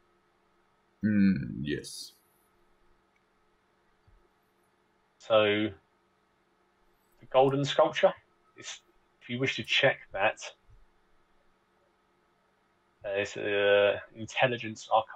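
A man speaks with animation over an online call.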